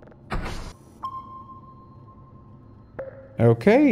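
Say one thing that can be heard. A computer terminal gives a steady electronic beep.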